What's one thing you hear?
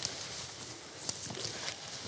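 Footsteps crunch on the forest floor.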